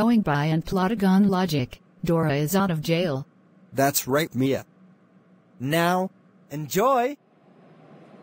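A man speaks calmly in a flat, synthetic voice, close up.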